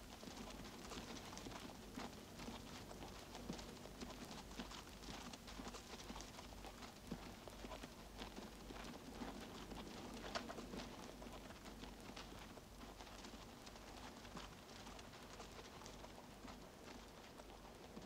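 Horses' hooves thud on sand.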